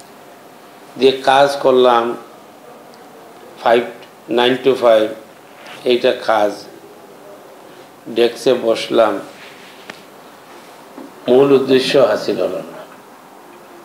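An elderly man speaks calmly into a microphone in bursts, with pauses between phrases.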